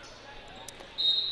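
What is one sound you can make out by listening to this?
A referee blows a shrill whistle.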